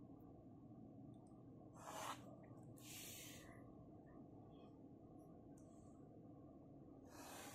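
A pen scratches across paper.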